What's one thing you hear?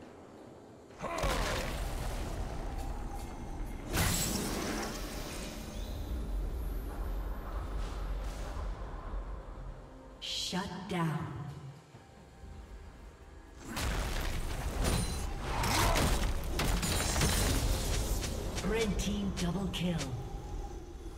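Magic spells whoosh and blast in a fast, noisy fight.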